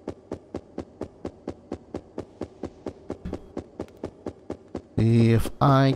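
Quick, even footsteps tap on the ground.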